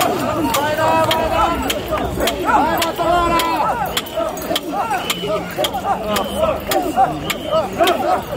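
A large crowd of men chants loudly and rhythmically outdoors.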